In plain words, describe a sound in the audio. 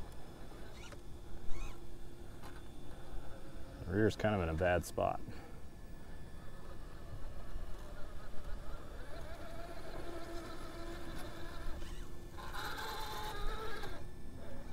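Rubber tyres scrape and grind on rock.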